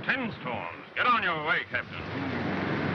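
A man speaks sharply and close by.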